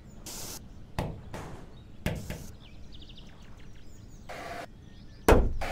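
A heavy object thuds and clatters as it is knocked about.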